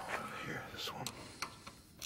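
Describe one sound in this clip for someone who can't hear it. Fingers click a small plastic switch on an engine.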